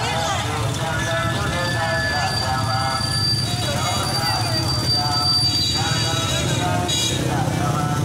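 Motorbike engines idle and rev nearby.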